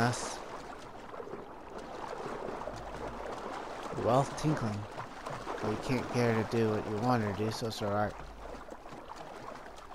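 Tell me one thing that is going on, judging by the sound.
Water sloshes as a swimmer strokes through it.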